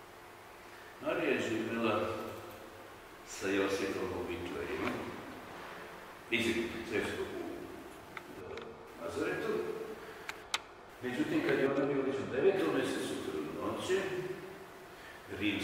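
An elderly man speaks calmly in a room with some echo.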